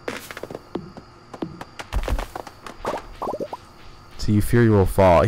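Short game sound effects pop and chime as items are picked up.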